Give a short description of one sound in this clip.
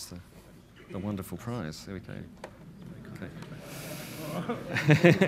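Two men talk quietly nearby.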